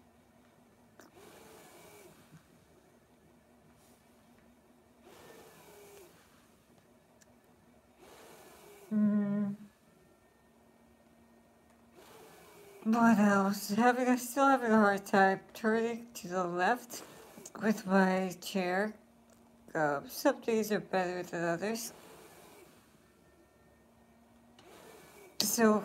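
A middle-aged woman breathes audibly between her words.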